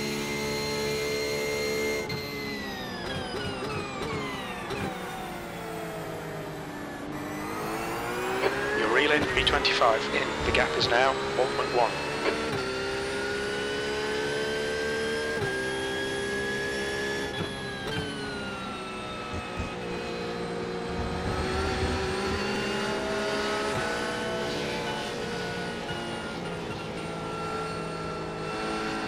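A racing car engine roars, its pitch falling and rising through gear changes.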